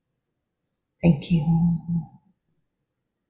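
An elderly woman speaks briefly and calmly over an online call.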